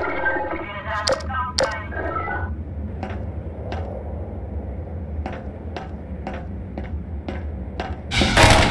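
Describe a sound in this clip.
Footsteps clank on a metal ladder in an even rhythm.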